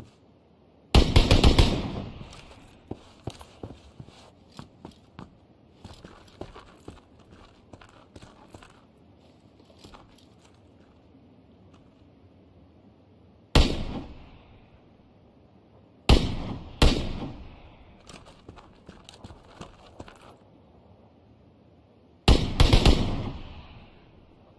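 Loud rifle shots crack and echo away.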